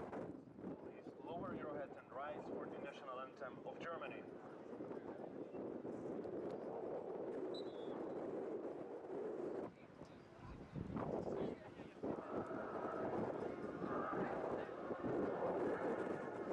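A group of young men sing together outdoors.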